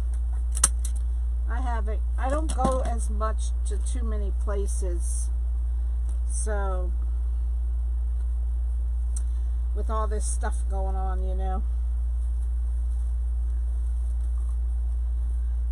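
Plastic tinsel and mesh rustle softly as hands handle them.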